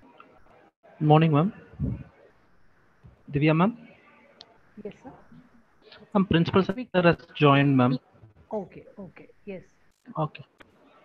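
A man speaks over an online call.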